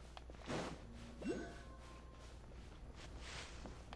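Footsteps patter quickly over dirt.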